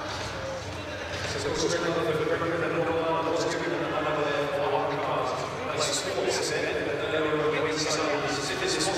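A large crowd cheers in a big echoing hall.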